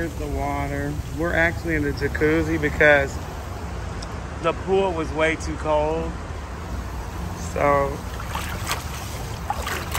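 Water churns and bubbles in a pool.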